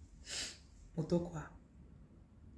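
A young woman speaks a few words softly, close by.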